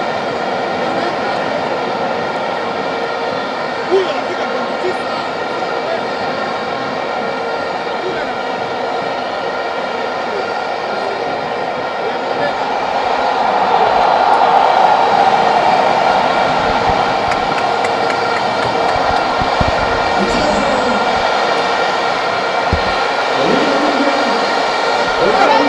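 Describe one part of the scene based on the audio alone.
A large stadium crowd sings and cheers loudly, echoing in the open air.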